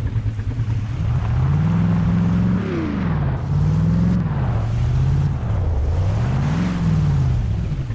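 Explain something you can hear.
An engine of an eight-wheeled off-road truck revs up and down.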